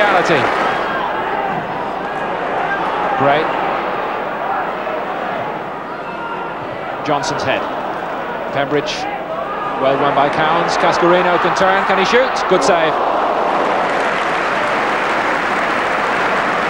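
A large crowd murmurs and chants in an open stadium.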